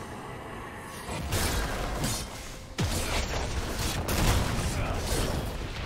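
Game weapons clash and strike in a fight.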